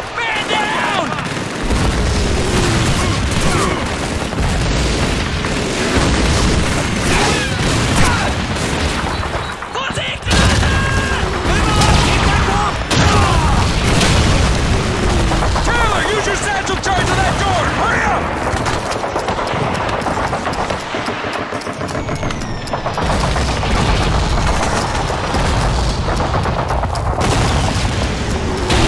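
Gunfire and explosions rumble steadily all around.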